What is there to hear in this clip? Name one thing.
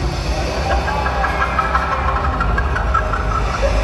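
Fountain jets spray and splash water.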